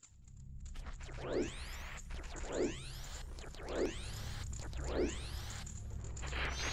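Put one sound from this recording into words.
Game sound effects whoosh repeatedly as a character spins.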